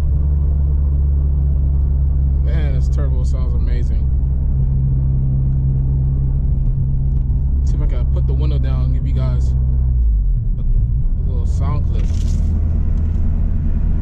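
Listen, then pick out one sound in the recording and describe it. A car engine hums with a steady low rumble while driving.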